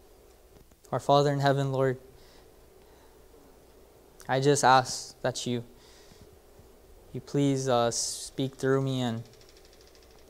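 A young man speaks calmly into a microphone in a large echoing hall, pausing between phrases.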